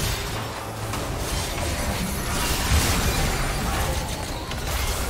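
Game weapons clash and strike with sharp hits.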